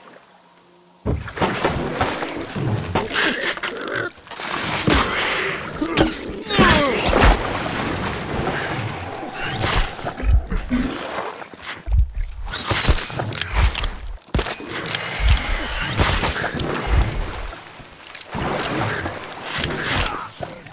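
Water churns and sloshes around a boat.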